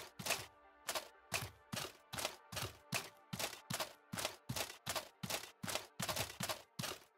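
Heavy footsteps thud steadily on stone in an echoing space.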